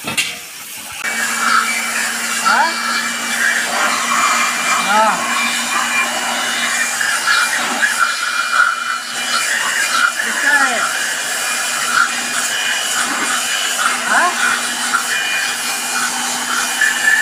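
A power grinder whirs steadily against metal.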